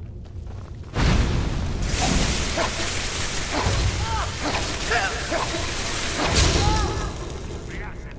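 Fire spells roar and crackle loudly.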